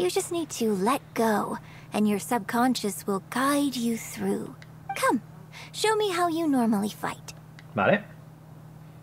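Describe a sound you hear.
A young woman speaks expressively in a character voice.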